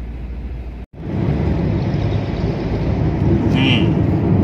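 Tyres roar steadily on a highway as a car drives at speed.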